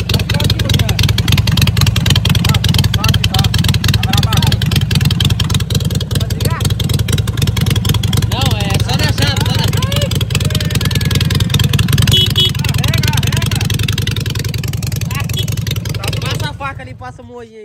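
A motorcycle engine idles with a loud, rapid rumble close by.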